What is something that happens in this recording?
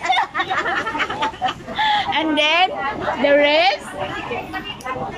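A group of young women chatter and laugh together.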